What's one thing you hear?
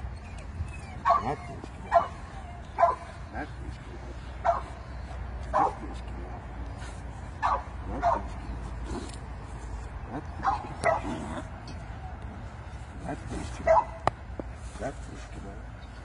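A man close by calls out in short, excited bursts.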